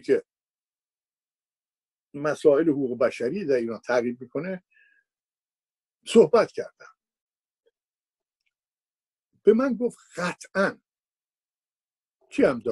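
An elderly man speaks calmly and thoughtfully into a microphone, with long pauses.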